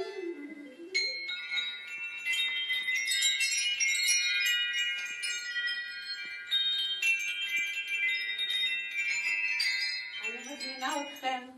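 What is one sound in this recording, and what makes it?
Wind chimes ring brightly as a child strikes them.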